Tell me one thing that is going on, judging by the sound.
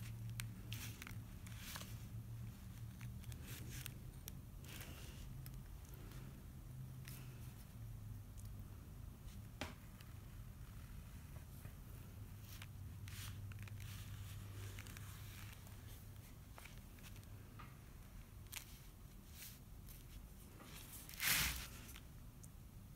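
A metal stylus scratches softly on paper.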